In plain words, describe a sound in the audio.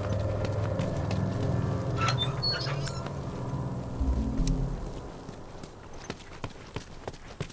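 Footsteps run over hard pavement.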